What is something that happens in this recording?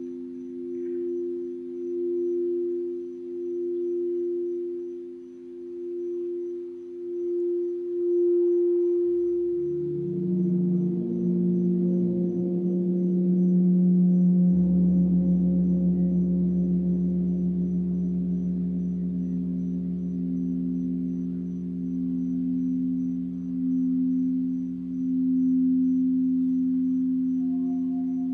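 A crystal singing bowl hums a steady, pulsing tone.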